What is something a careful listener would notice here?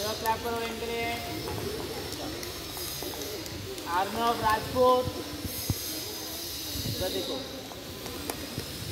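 A man speaks outdoors, reading out.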